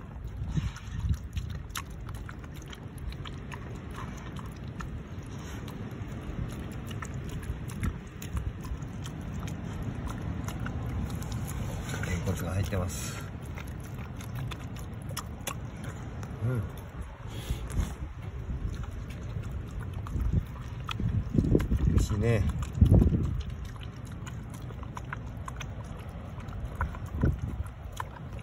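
A dog eats noisily from a metal bowl, chewing and smacking close by.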